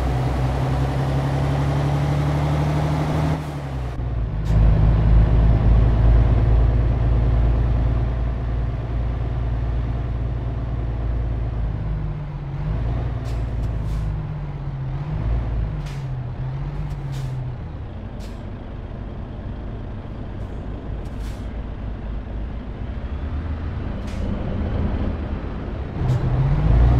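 A truck engine drones steadily, its pitch rising and falling as it shifts gears.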